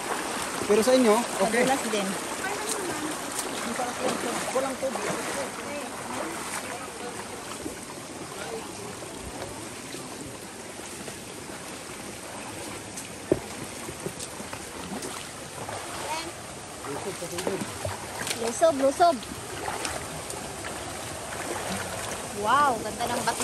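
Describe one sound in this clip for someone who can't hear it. Young women talk and call out nearby with animation.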